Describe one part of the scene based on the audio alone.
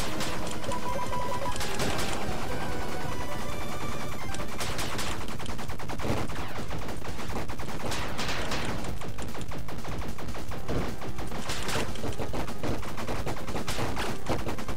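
Rapid game gunfire pops and blasts.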